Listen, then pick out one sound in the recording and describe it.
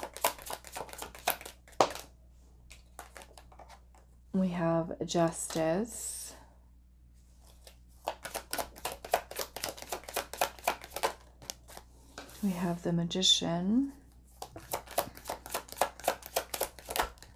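Playing cards riffle and flick rapidly as a deck is shuffled by hand.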